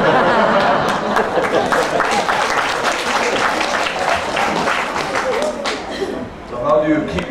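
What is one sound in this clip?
An elderly woman laughs heartily.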